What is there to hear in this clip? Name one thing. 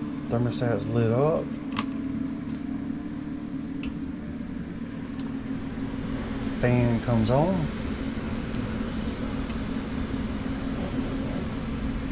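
A finger presses the plastic buttons of a wall thermostat with soft clicks.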